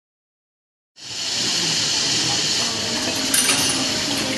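Steam hisses loudly from an espresso machine's wand.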